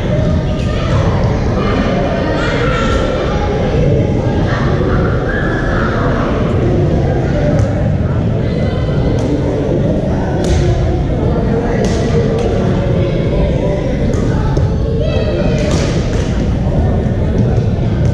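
Several adult players call out and chatter across an echoing hall.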